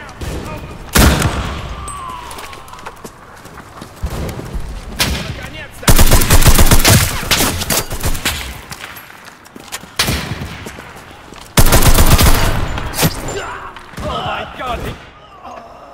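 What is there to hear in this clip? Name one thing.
Gunshots fire in loud bursts.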